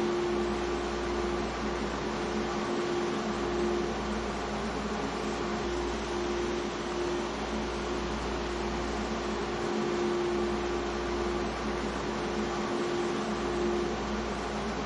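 A stopped subway train's motors hum steadily.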